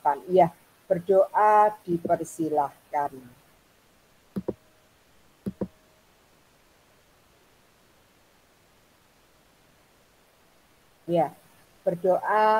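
An older woman speaks calmly through an online call.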